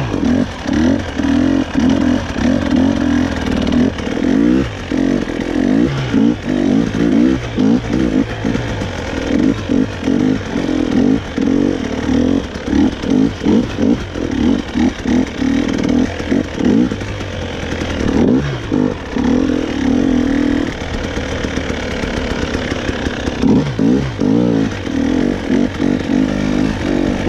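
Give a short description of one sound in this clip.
Tyres crunch over rocky, muddy ground.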